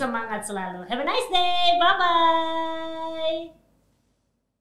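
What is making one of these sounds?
A woman speaks cheerfully into a microphone.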